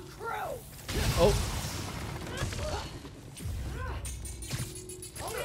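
Glass shatters and debris clatters.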